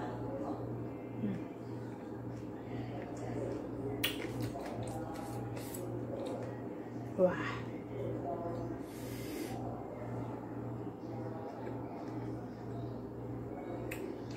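A young woman chews food with wet smacking sounds.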